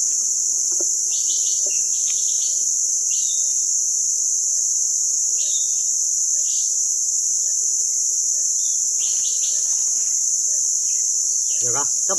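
A knife scrapes against a log's bark.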